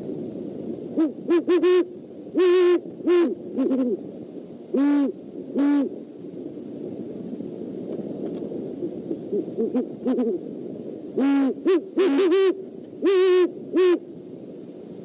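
An owl hoots repeatedly nearby, in short pitched calls.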